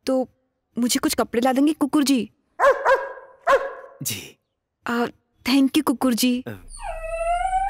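A young woman speaks with emotion, close by.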